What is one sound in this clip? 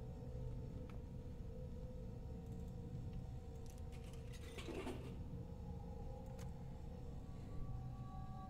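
A vending machine hums steadily.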